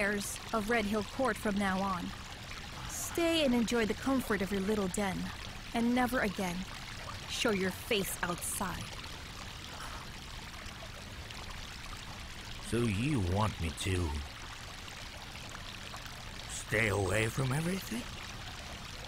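An elderly man speaks earnestly, close by.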